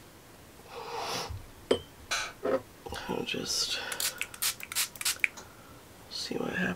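A marker cap clicks and taps.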